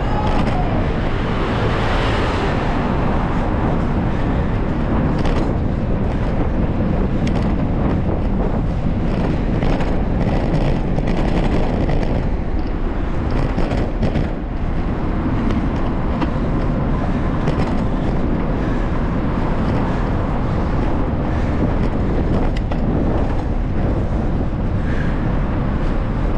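Wind buffets a moving bike's microphone in a loud, steady rumble.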